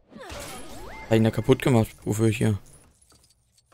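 Small game coins clink and chime as they are collected.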